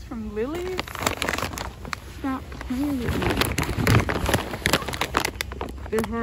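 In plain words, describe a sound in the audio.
A plastic snack bag crinkles as it is handled.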